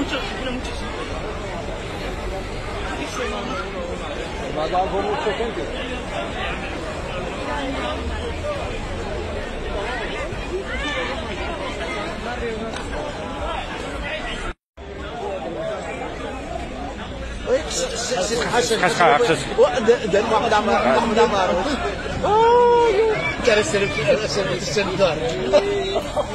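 A crowd of men and women talks outdoors, with voices overlapping.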